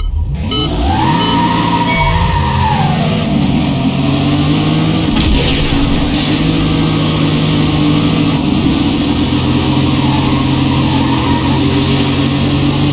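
A race car engine revs hard and roars as it speeds up through the gears.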